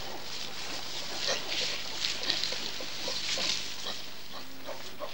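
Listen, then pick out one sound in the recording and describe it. Straw rustles and crunches under bodies rolling in it.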